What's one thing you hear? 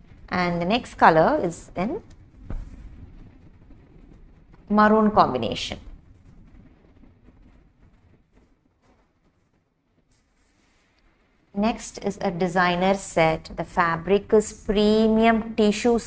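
Cloth rustles softly as it is unfolded and laid down.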